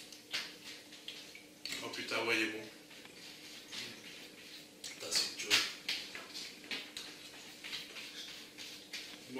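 A man chews and bites noisily into a large burger close by.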